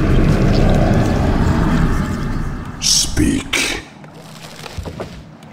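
A magical tower zaps with crackling energy bolts.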